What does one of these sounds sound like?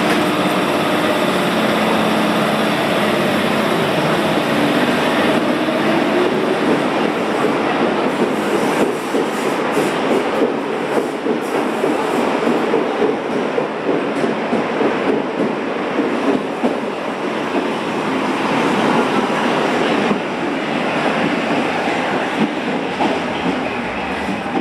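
A subway train rumbles and rattles as it pulls out and speeds away, echoing in an underground hall.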